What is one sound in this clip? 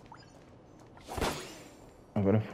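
A blade swishes through the air with a sharp whoosh.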